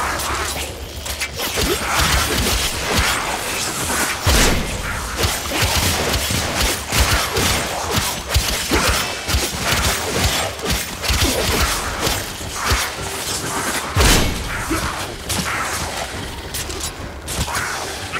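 Blades slash and clang with sharp metallic hits.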